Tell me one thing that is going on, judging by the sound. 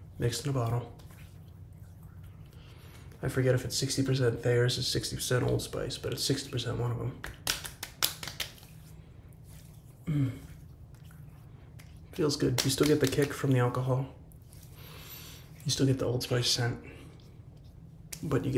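A man talks calmly and close by, in short bursts with pauses.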